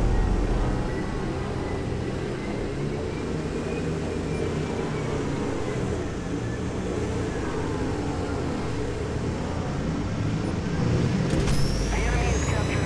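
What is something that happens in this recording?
A craft's engine hums in a steady low drone.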